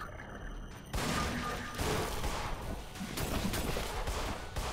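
A pistol fires loud shots.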